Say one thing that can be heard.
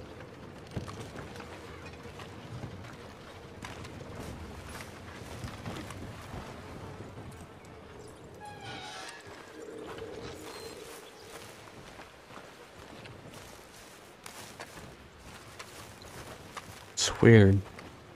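Footsteps crunch on a dirt path outdoors.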